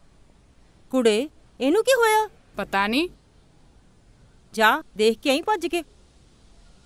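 A middle-aged woman speaks in a pleading, worried voice, close by.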